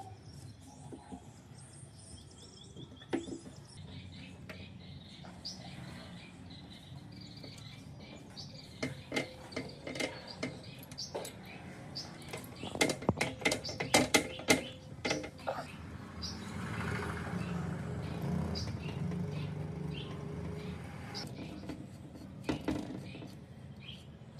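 Metal parts click and clink.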